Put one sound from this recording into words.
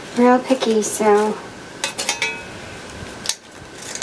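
Scissors snip through ribbon.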